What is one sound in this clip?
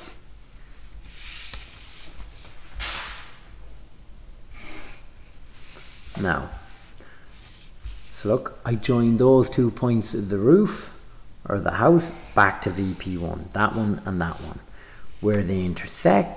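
Plastic set squares slide and tap on paper.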